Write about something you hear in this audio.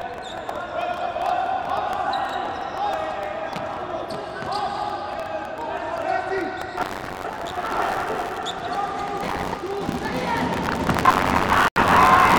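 A ball is kicked on a hard indoor court.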